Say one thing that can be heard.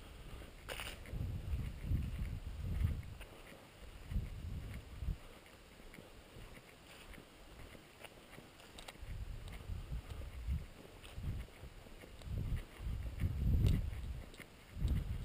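Footsteps crunch through dry fallen leaves outdoors.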